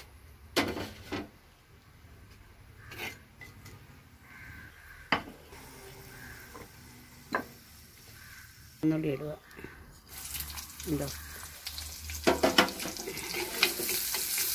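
Hot oil sizzles and crackles in a pot.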